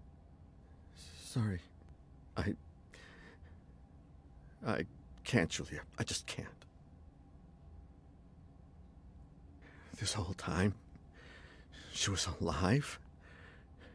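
A young man talks into a microphone in short bursts.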